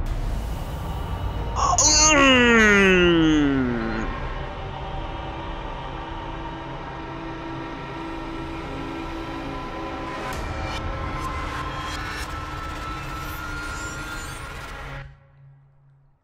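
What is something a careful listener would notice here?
A low electronic drone hums steadily and then cuts off.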